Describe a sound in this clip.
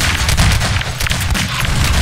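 An energy beam crackles and zaps.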